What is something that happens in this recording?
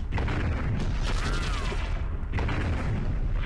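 A magic blast whooshes and rings out.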